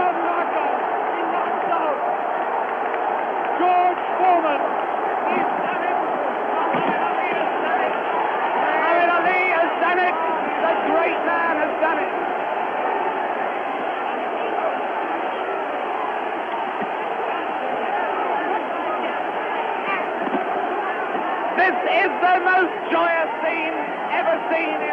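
A large crowd cheers and roars loudly throughout.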